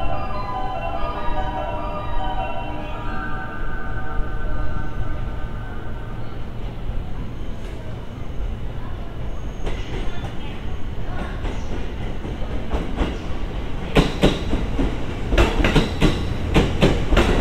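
A train rumbles closer along the tracks.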